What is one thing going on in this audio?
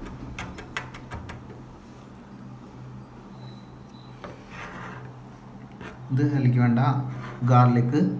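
A knife chops on a plastic board with quick taps.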